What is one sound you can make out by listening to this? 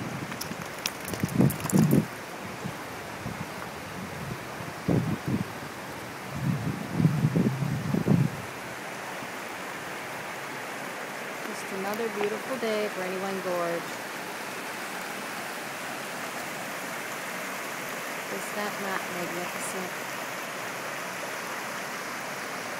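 A shallow stream rushes and babbles over rocks.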